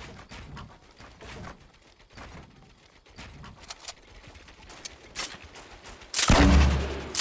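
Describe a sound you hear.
Building pieces snap into place with quick clacks.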